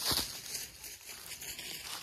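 Dry leaves rustle.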